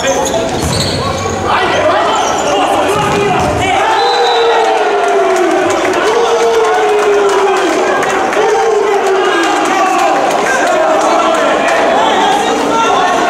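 A crowd chants and sings loudly in a large echoing hall.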